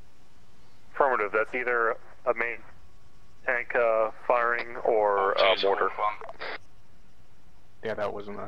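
A young man talks casually into a nearby microphone, in short bursts.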